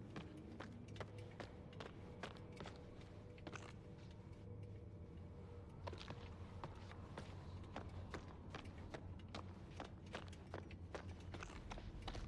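Footsteps crunch slowly over a gritty floor.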